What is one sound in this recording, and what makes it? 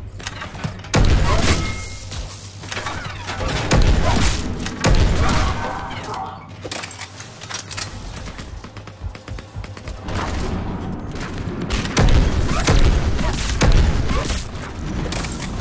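Guns fire in loud bursts with booming blasts.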